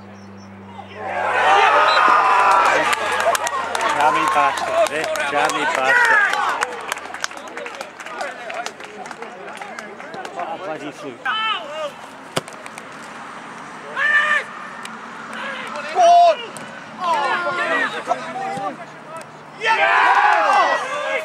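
Young men shout and cheer loudly outdoors.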